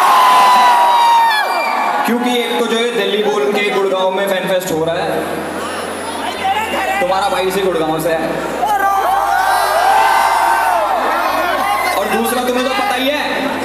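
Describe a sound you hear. Music plays loudly through loudspeakers.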